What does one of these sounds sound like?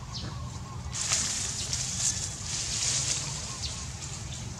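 Leaves and branches rustle as a monkey climbs through a tree.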